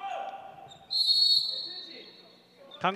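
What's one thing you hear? A referee's whistle blows a short, shrill blast.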